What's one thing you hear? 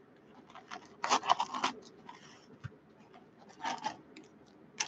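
Foil card packs crinkle and rustle as they are handled.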